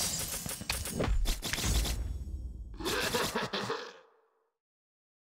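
A man talks close to a microphone.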